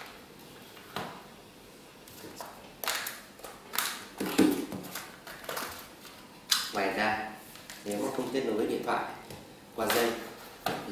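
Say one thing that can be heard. Plastic packaging rustles and clicks as it is handled.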